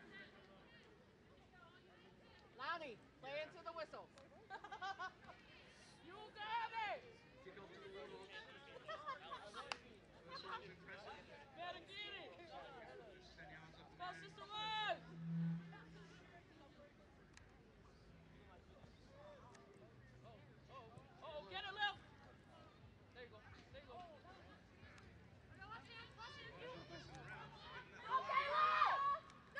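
Young women shout and call out to each other across an open field, outdoors.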